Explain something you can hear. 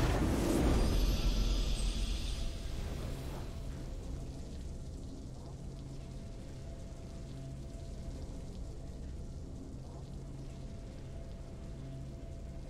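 Triumphant game music plays softly.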